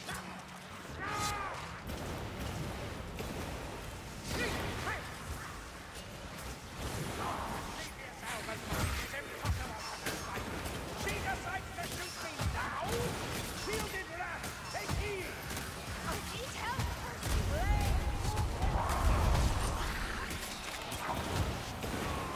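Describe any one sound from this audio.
Creatures screech and squeal while fighting.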